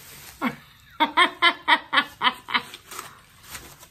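A middle-aged woman laughs heartily.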